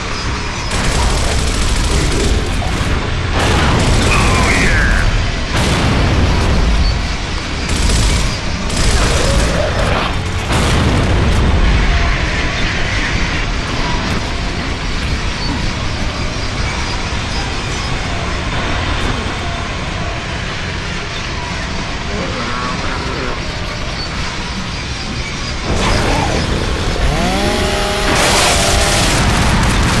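A train rumbles along steadily.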